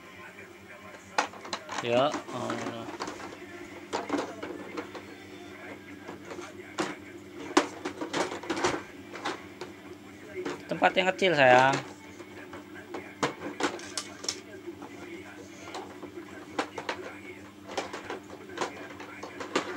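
Plastic toys knock and clatter against a plastic basket.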